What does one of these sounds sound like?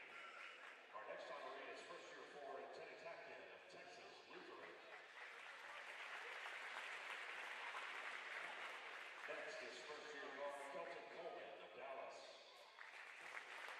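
A man speaks over a loudspeaker, announcing.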